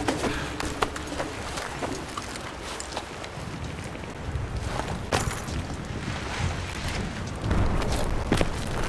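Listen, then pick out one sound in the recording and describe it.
Gear rustles and clinks as a soldier moves through a narrow space.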